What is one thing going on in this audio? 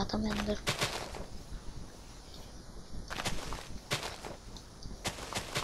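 Footsteps thud softly on grass.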